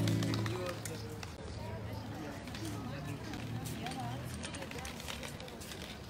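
An acoustic guitar strums chords.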